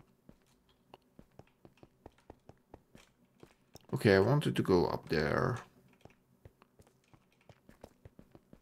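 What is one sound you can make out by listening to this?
Footsteps tap steadily on stone.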